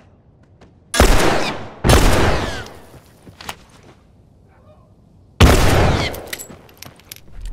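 Gunshots boom loudly, each followed by a long echo.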